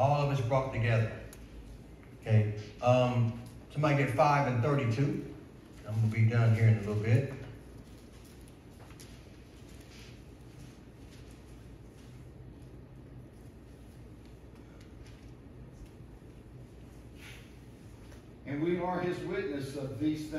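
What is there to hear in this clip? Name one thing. A man speaks calmly into a microphone in an echoing hall, with pauses.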